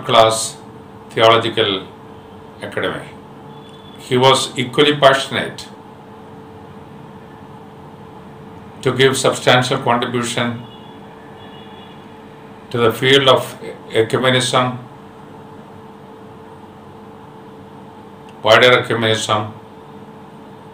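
An elderly man speaks slowly and calmly close by, in short phrases with long pauses.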